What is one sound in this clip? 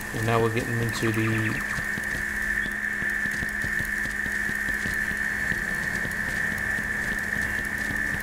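A small animal patters through dry grass.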